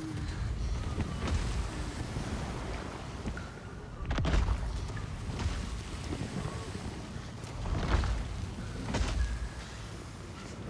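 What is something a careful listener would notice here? A huge creature's heavy steps thud and rumble.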